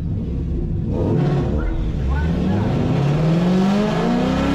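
A car engine revs hard and rises in pitch.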